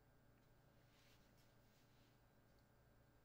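Fabric rustles softly as a person moves.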